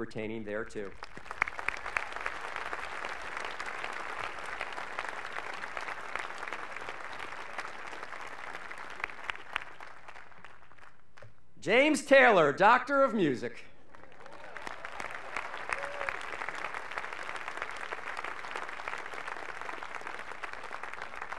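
A crowd applauds steadily outdoors.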